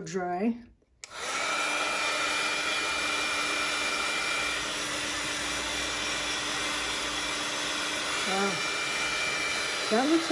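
A heat gun whirs with a steady roar of blowing air.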